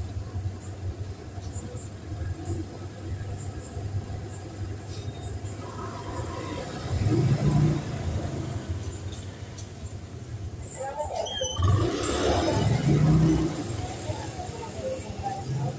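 A motorbike engine rumbles close by, then pulls away.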